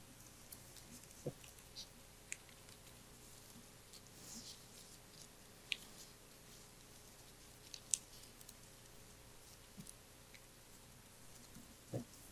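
Paper rustles as a man turns pages.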